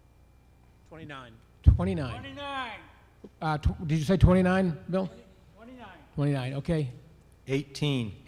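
A middle-aged man speaks calmly into a handheld microphone over a loudspeaker in a large echoing hall.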